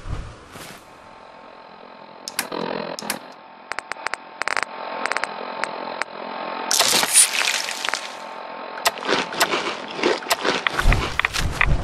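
Soft electronic clicks and beeps tick quickly as a menu scrolls.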